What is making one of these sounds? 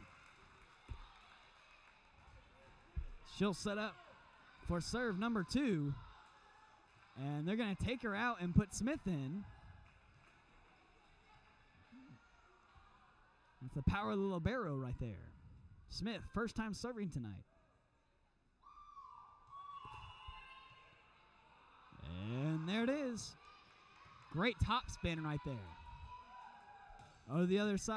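A volleyball is hit with dull thumps.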